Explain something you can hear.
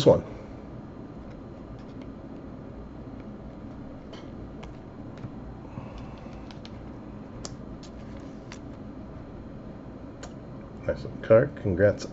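Trading cards slide and tick against each other in the hands.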